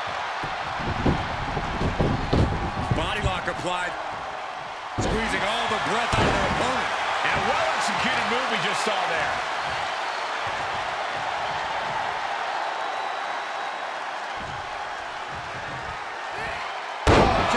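Bodies thud onto a wrestling ring's canvas.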